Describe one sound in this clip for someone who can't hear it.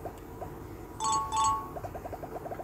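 A short electronic warning beep sounds twice.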